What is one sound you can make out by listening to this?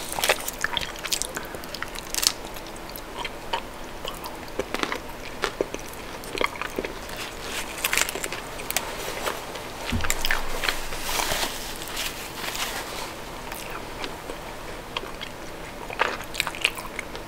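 A woman chews chocolate close to the microphone, with wet mouth sounds.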